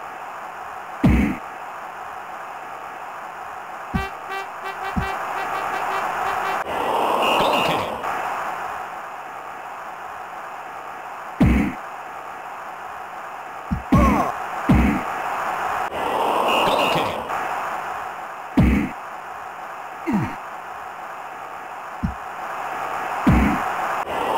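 A ball is kicked with dull thumps.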